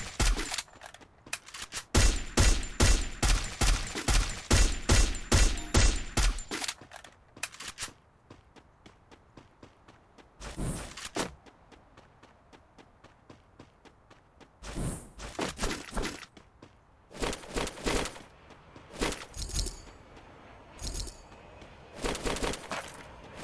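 Footsteps run over grass and paving.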